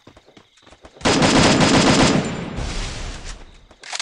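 A heavy barrier thuds into place.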